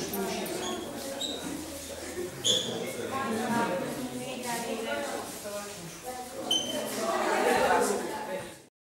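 Many children chatter and talk over one another close by.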